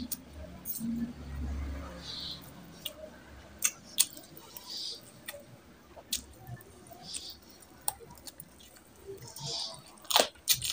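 Fingers squish and squelch through soft, saucy food.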